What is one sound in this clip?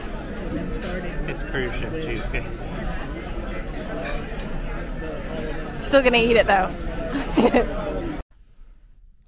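A crowd chatters steadily in a busy room.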